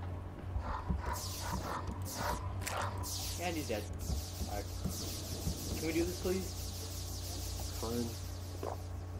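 Magic spell shots whoosh and sparkle in quick bursts.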